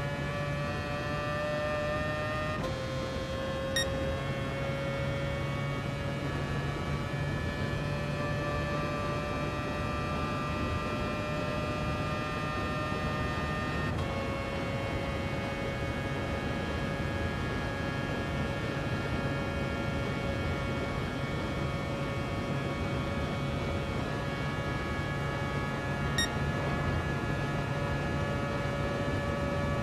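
A racing car engine roars at high revs, climbing slowly in pitch.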